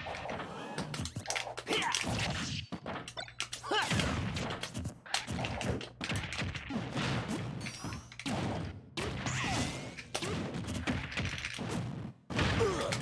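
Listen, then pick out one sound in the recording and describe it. Video game fight sounds thud and whoosh in quick bursts.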